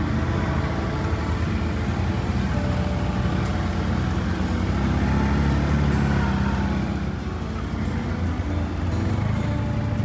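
An all-terrain vehicle engine rumbles steadily up close.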